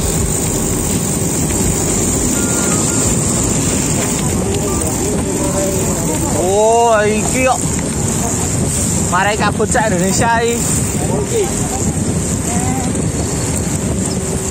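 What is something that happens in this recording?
Bicycle tyres roll and crunch over a wet, rough road.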